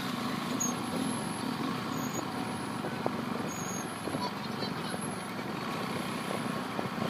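Several motorcycle engines hum steadily nearby.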